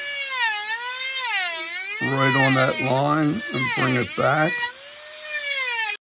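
A rotary tool whines as it grinds wood, its pitch rising and falling.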